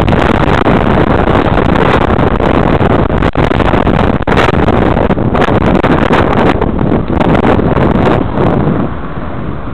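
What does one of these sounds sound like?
Wind rushes loudly over a moving bicycle.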